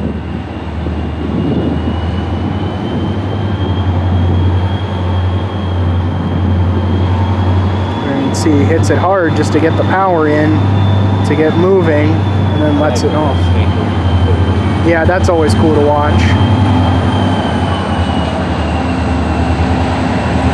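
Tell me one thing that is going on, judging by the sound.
A diesel locomotive engine rumbles and throbs steadily close by.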